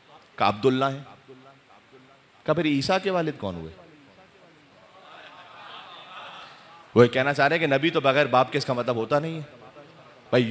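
A man speaks with emotion into a microphone, in bursts with pauses, heard through a loudspeaker.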